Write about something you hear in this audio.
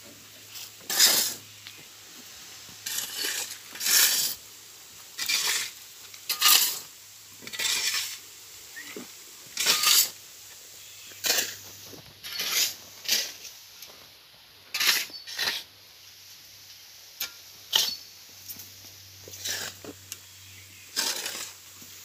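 Shovels scrape and scoop into a pile of soil, again and again.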